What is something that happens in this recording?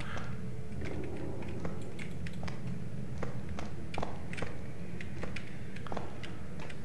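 Footsteps tap on a hard floor at a walking pace.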